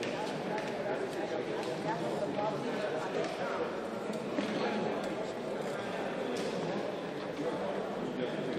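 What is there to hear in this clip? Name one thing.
People chat quietly in a large echoing hall.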